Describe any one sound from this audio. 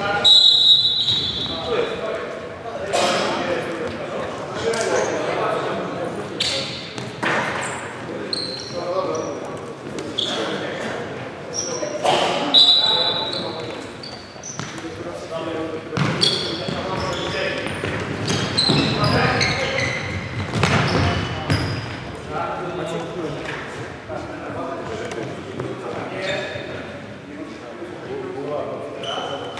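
Sports shoes squeak on a wooden court.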